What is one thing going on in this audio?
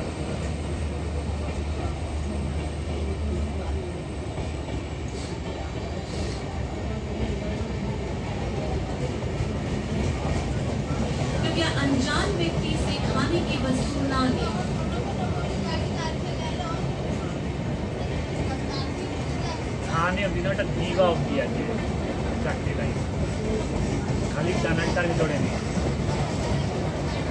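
A train rumbles steadily past on the rails.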